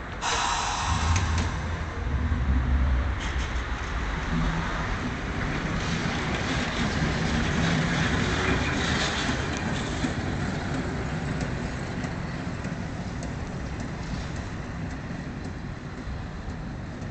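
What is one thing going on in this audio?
A tram rumbles and clatters along its rails, then slowly fades into the distance.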